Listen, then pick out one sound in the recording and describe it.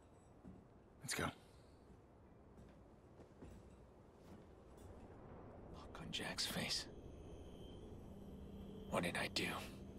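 A man speaks close to a microphone in short bursts.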